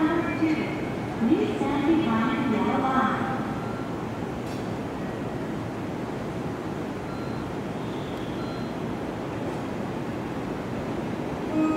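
A heavy train rolls slowly in with a steady low rumble.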